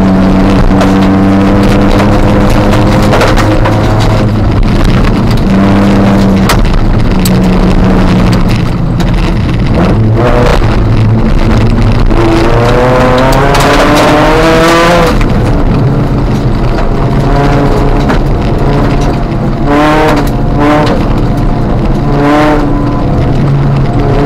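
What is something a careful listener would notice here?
Tyres crunch and rumble on a gravel road.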